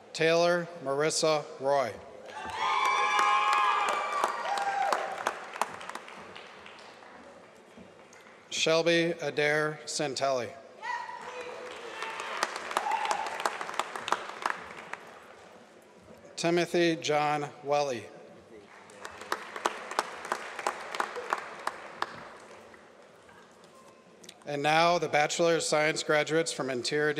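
A man reads out names through a microphone in a large hall.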